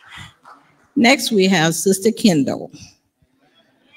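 A woman speaks through a microphone with animation.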